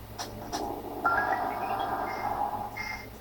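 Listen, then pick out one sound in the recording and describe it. A rising chime of game tones sounds.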